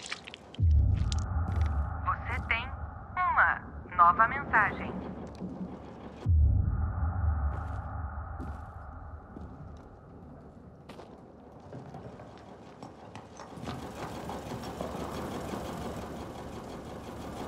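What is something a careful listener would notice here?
Footsteps walk slowly indoors.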